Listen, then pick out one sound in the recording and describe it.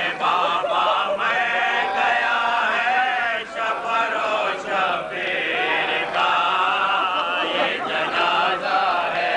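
An elderly man sings a slow, mournful lament into a microphone.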